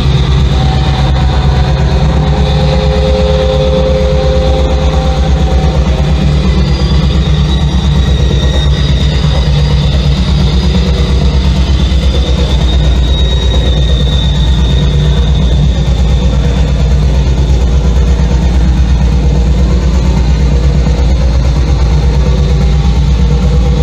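High, distorted electronic tones hum and shift slowly over the bass.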